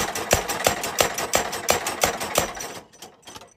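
A hammer strikes a steel blade rapidly with sharp ringing clangs.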